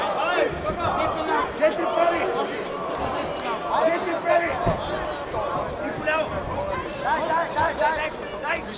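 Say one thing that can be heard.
A crowd cheers in a large hall.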